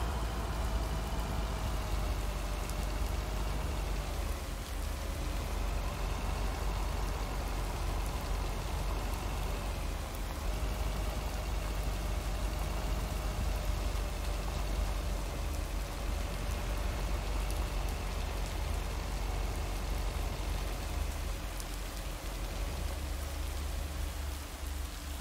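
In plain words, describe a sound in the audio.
A truck engine hums steadily as it drives along.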